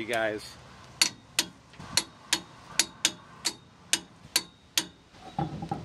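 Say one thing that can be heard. A ratchet wrench clicks in quick, even strokes.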